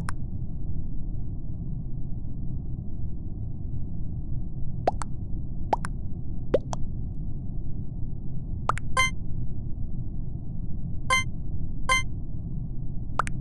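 Soft taps and clicks sound as buttons are pressed in a game.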